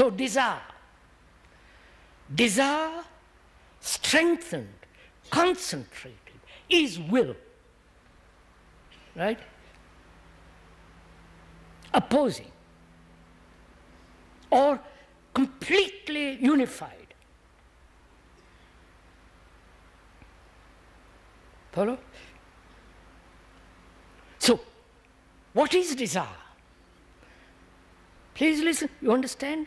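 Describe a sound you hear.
An elderly man speaks slowly and deliberately into a close microphone, with long pauses.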